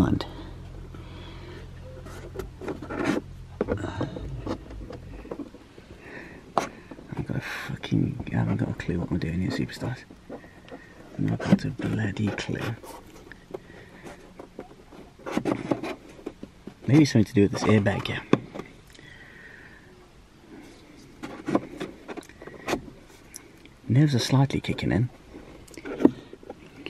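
A plastic pry tool scrapes and clicks against car interior trim.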